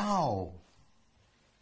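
An elderly man speaks with amusement close to a microphone.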